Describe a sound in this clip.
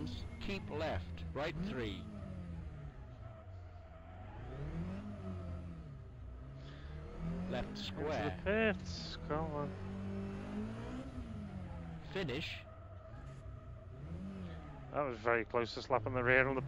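A racing car engine revs high and drops again and again.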